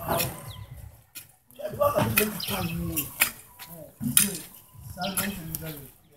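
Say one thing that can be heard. A hoe chops into loose soil.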